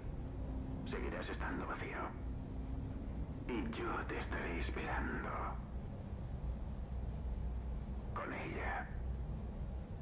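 A man speaks quietly and darkly, close by.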